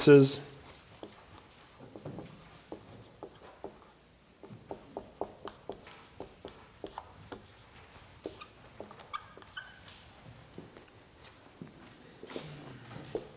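A marker squeaks and taps on a writing board.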